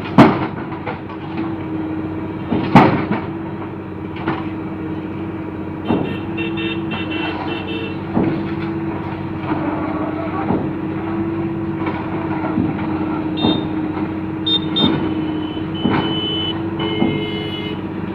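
Concrete and rubble crash and clatter as a wall is knocked down.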